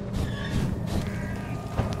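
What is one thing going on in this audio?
A fire crackles.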